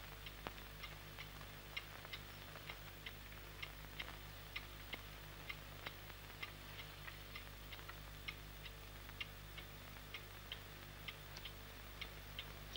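A clock ticks steadily and loudly.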